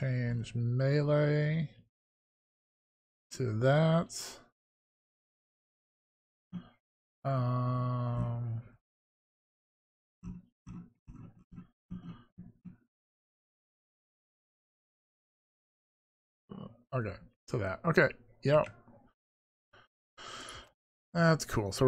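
A middle-aged man speaks casually into a close microphone, in short bursts with pauses.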